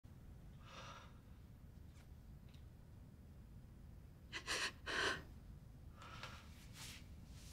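A man speaks softly and sadly nearby.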